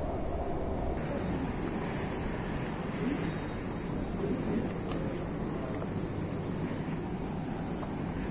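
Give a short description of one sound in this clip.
Footsteps echo on a hard floor in a large, echoing hall.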